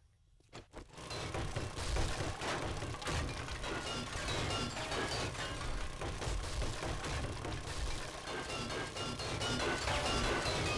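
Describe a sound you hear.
Blows strike a wooden barricade.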